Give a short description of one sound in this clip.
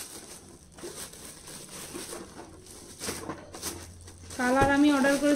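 A plastic bag crinkles as it is handled.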